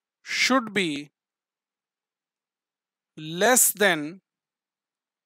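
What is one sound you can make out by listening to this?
A man speaks calmly and clearly, close to a microphone, in short phrases with pauses.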